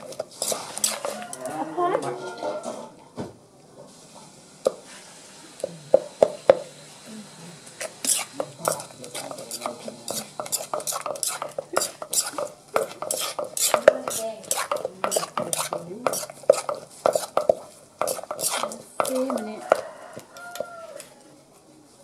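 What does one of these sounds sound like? A pestle pounds in a stone mortar.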